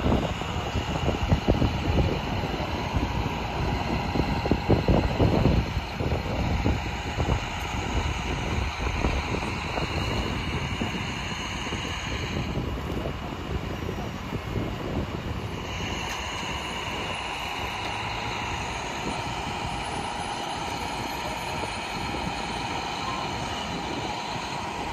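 A fire engine's engine idles with a steady hum nearby.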